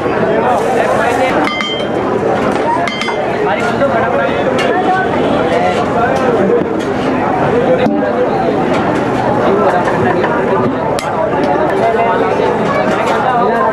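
A crowd of people chatters loudly all around outdoors.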